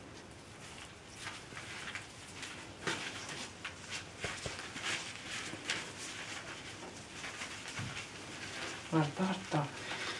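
Puppies rustle and scamper through wood shavings.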